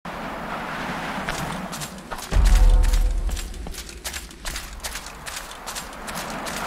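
Armored footsteps clank and crunch over snow and stone.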